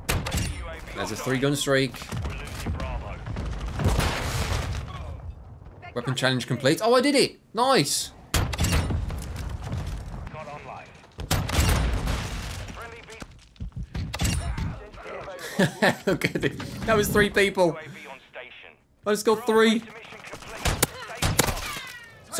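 Shotgun blasts boom loudly and echo.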